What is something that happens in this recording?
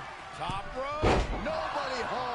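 A body slams heavily onto a wrestling mat with a loud thud.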